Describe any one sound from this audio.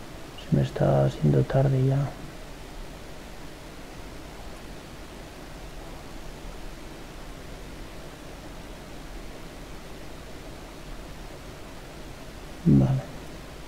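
A young man speaks briefly and calmly into a microphone.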